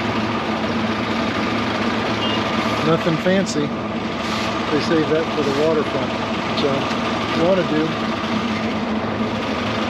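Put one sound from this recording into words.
A bus engine idles steadily nearby.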